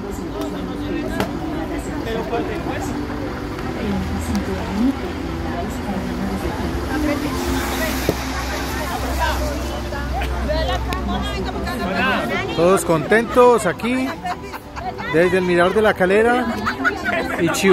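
Young people talk and laugh close by, outdoors.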